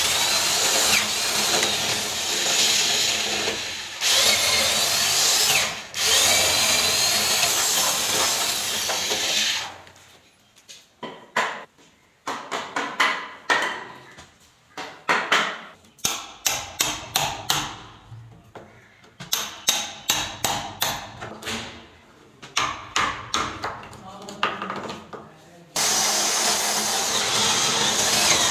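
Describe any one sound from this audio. An electric drill bores into the wooden edge of a door.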